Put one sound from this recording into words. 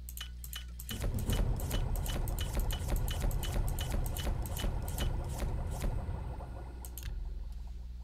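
A potion bubbles and clinks as it is brewed.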